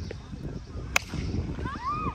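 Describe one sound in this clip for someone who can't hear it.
A bat sharply strikes a ball outdoors.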